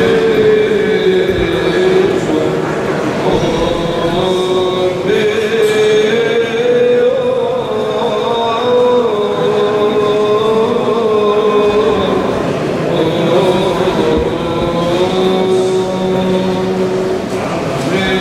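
A man chants slowly in a steady, sung voice, echoing in a large stone hall.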